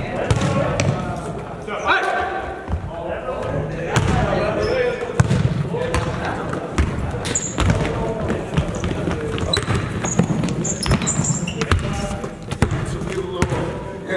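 Several young men call out to each other while playing.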